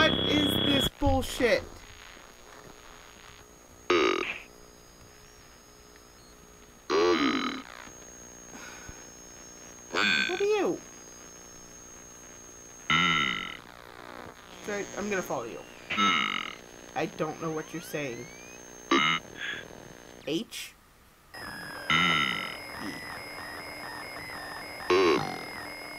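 A woman talks with animation into a close microphone, in short bursts.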